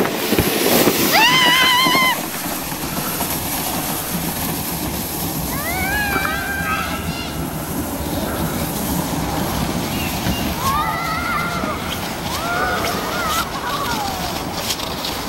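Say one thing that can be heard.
A young girl calls out from a distance.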